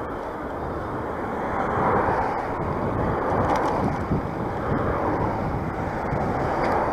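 A car drives past on the road nearby.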